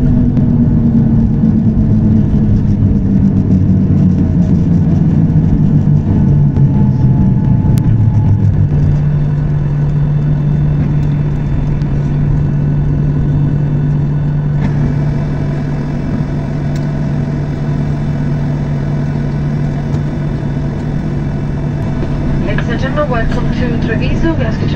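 An aircraft rumbles and rattles as it rolls along the ground.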